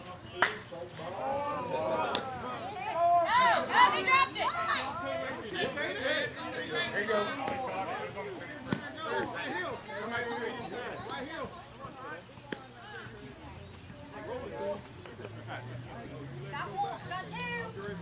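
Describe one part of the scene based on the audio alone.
Adult players shout and call out across an open field outdoors.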